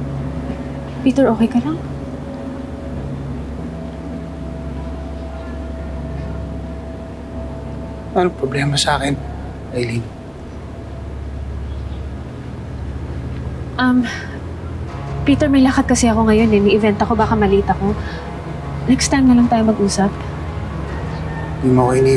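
A young woman speaks with agitation.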